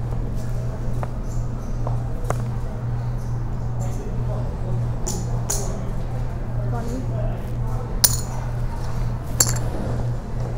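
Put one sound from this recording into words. Poker chips click and clack as a man handles them.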